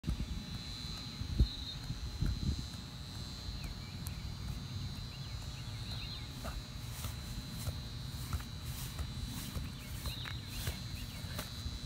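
A football thuds as a man heads it.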